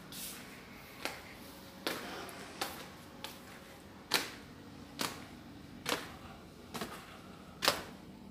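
Footsteps climb hard stairs at an even pace.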